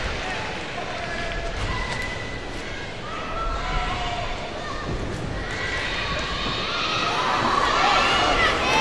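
A large crowd murmurs and chatters in a big echoing arena.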